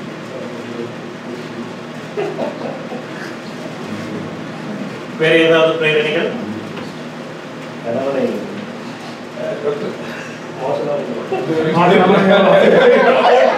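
A man speaks calmly at a distance.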